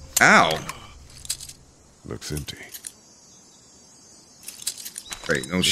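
Handcuff chains rattle and clink.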